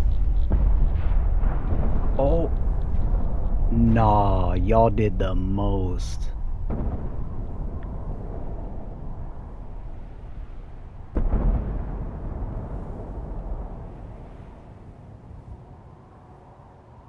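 A huge explosion rumbles deeply and slowly fades.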